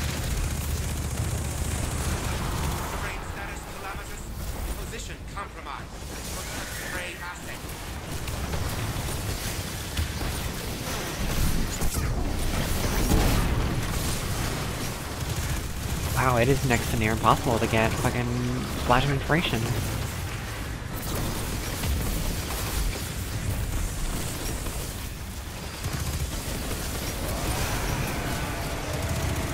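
Guns fire rapidly in bursts.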